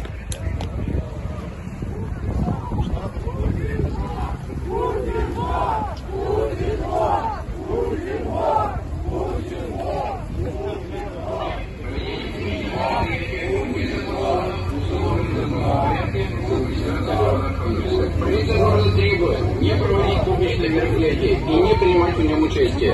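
A crowd murmurs and shuffles on snow.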